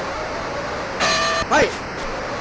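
A boxing bell rings once.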